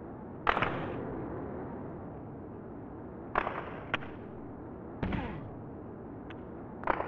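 Hockey sticks smack a puck with sharp cracks.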